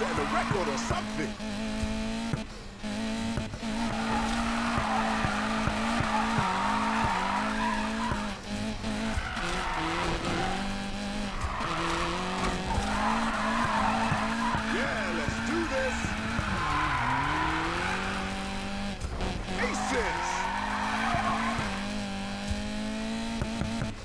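A car engine roars and revs up and down.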